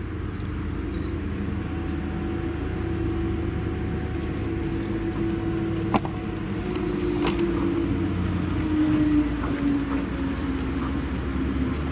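A forage harvester roars as it cuts maize.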